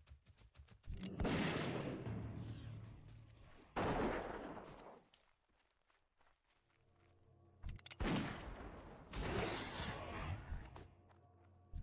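Heavy weapon blows strike a creature.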